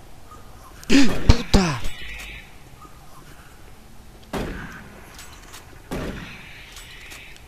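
A shotgun fires with loud, booming blasts.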